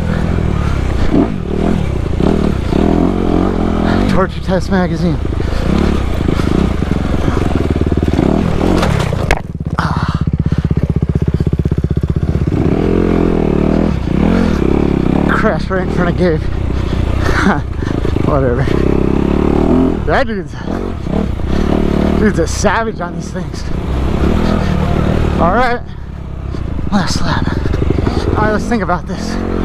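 A dirt bike engine roars and revs up and down close by.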